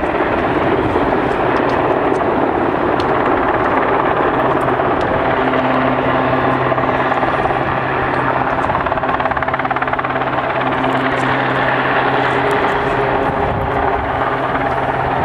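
Strong wind buffets and roars steadily outdoors.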